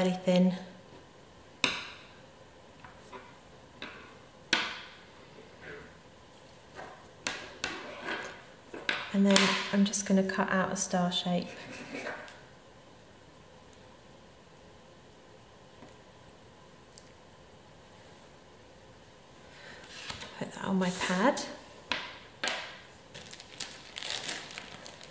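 Small objects tap and click on a tabletop.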